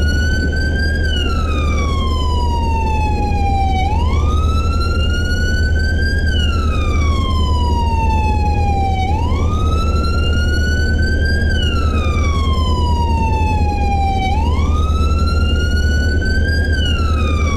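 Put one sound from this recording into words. A police siren wails nearby, slowly rising and falling.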